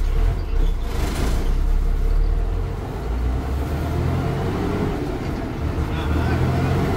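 A bus rattles and vibrates as it rolls along the road.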